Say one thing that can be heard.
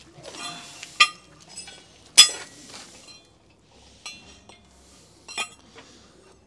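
Metal blades clank against a concrete floor.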